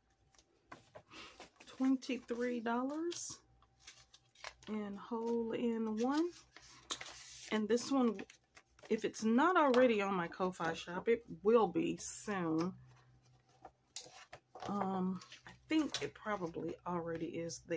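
Paper and card rustle and flap as they are handled.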